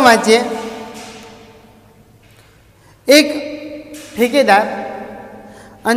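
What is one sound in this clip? A man speaks calmly through a microphone in an echoing room.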